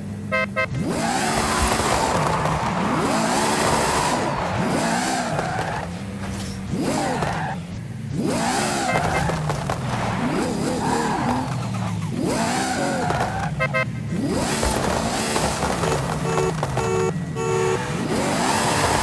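A sports car engine revs hard in bursts.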